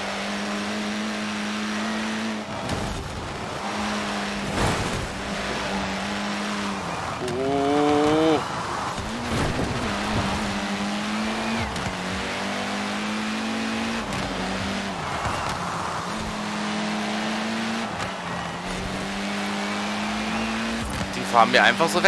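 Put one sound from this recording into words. A car engine drones steadily and revs up and down through gear changes.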